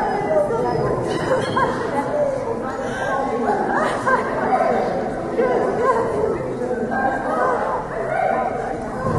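A man calls out commands to a dog in a large echoing hall.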